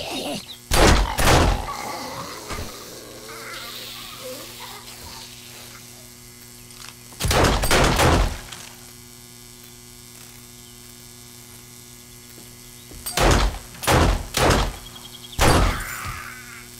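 Gunshots fire loudly in quick bursts.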